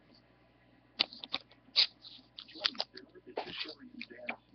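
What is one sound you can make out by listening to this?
Trading cards click and rustle in hands.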